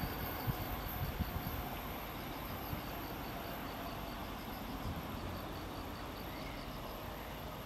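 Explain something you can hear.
Wind blows across open ground outdoors.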